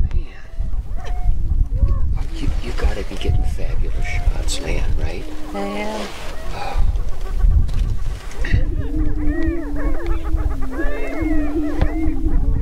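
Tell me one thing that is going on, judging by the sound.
A grouse cackles and whoops in quick bursts.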